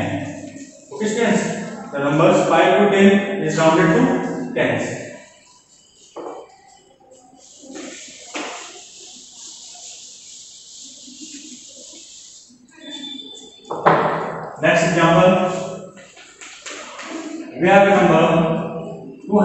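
A young man speaks calmly and clearly, like a teacher explaining.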